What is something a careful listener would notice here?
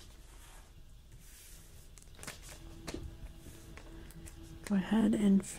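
Sheets of paper slide and rustle on a table.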